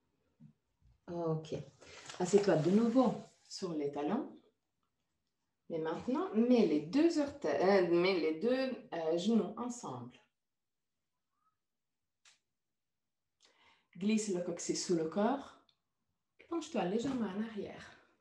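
A woman speaks calmly and close, giving slow instructions.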